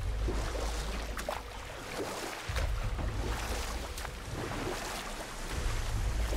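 Oars splash and dip in water as a small boat is rowed.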